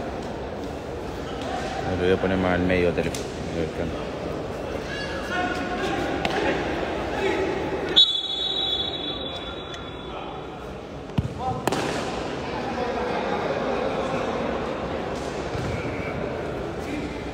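A ball thuds against a hard floor as players kick it.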